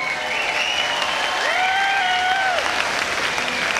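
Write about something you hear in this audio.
A large band plays a final chord that ends with a short flourish in a large echoing hall.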